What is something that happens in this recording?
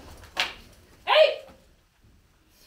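A woman shouts sharply.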